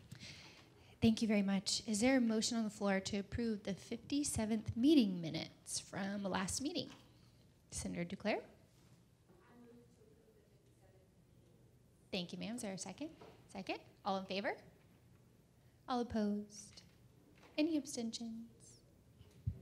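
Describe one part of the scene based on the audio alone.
A young woman speaks calmly into a microphone, heard through a loudspeaker.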